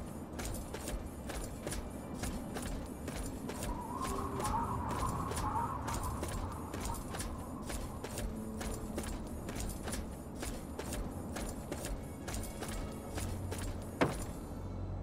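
Footsteps crunch steadily over gravel and dirt.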